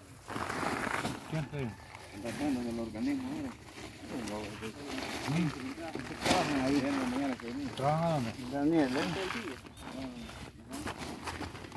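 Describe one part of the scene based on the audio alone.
Wood chips rustle as hands fill a sack.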